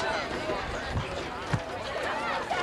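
Football players' pads and helmets thump together.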